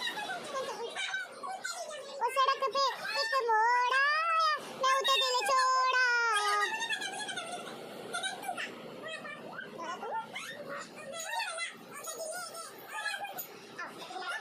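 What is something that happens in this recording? A toddler shouts and babbles loudly close by.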